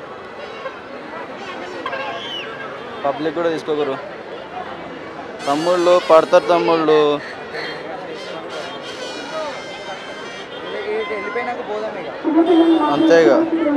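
A large crowd murmurs and chatters outdoors.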